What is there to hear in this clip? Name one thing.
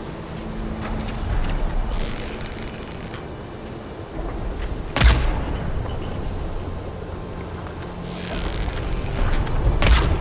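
Wind blows and rumbles through the open air.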